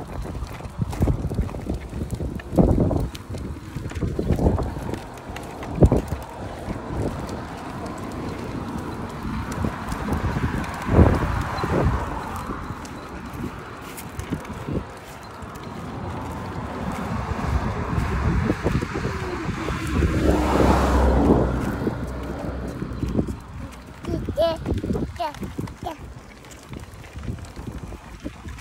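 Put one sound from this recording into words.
Plastic wheels of a child's tricycle rumble and rattle over concrete.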